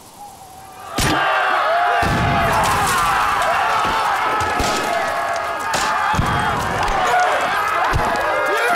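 A fireball bursts with a loud roar.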